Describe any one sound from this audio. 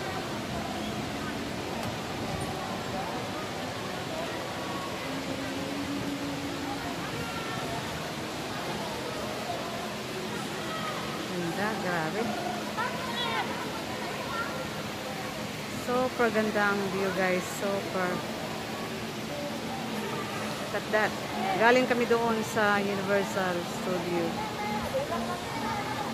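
Men and women chatter nearby in a crowd outdoors.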